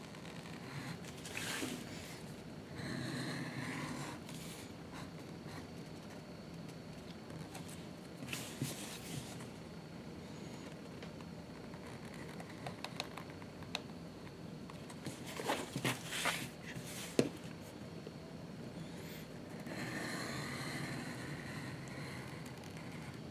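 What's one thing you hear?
A stitch groover scrapes as it cuts a groove along leather.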